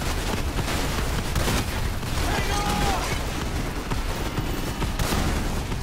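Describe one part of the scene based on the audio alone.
A loud explosion booms nearby.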